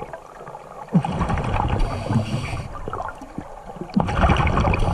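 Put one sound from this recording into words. Air bubbles from a diver's breathing gurgle and rumble underwater in bursts.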